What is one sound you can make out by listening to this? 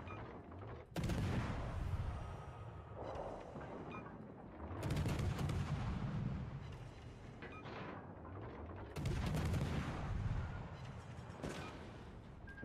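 Shells splash and explode in the water.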